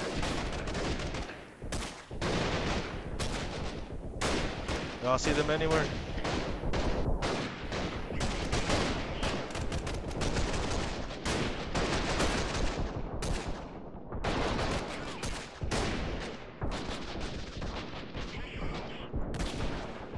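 Gunfire and explosions crackle and boom steadily in the distance.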